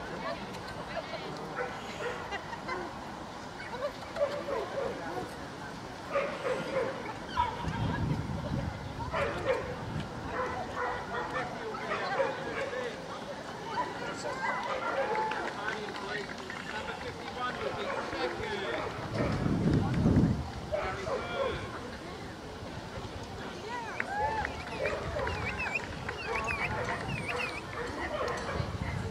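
A crowd of men and women chatter in the background.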